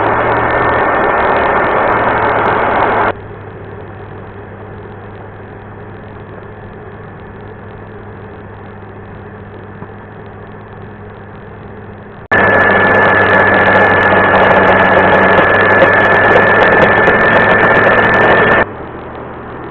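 A router bit cuts loudly into wood with a harsh grinding noise.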